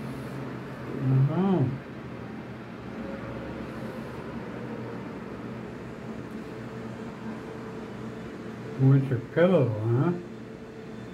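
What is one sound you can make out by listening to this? A cat meows close by.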